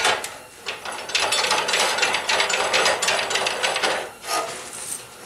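A chop saw whines as it cuts through metal.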